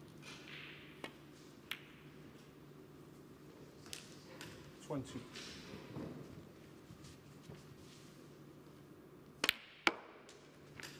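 Snooker balls click sharply against each other.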